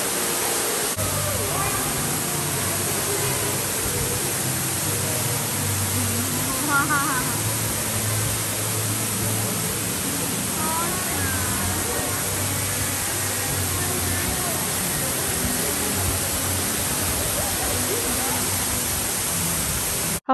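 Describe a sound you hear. A waterfall roars steadily, echoing in a large cave.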